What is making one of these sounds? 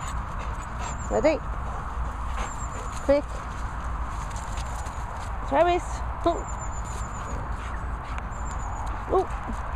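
A young girl calls out and squeals nearby.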